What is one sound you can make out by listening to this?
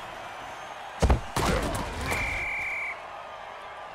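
Armoured players collide with a heavy thud.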